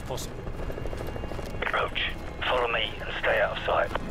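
A helicopter flies overhead with a distant rotor thud.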